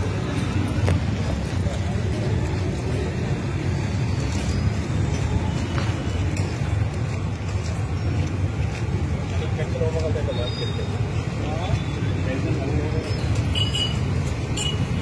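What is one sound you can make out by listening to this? Boots tramp in step on a road as a group marches.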